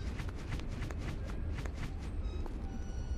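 Quick footsteps patter on a stone floor.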